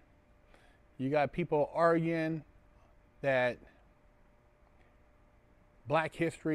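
A man speaks calmly and close into a clip-on microphone, with pauses.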